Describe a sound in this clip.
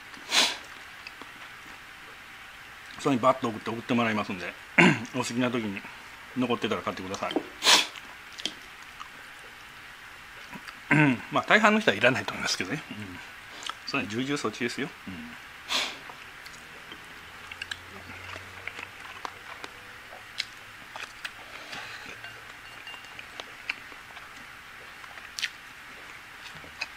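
Chopsticks click against a plate and a bowl.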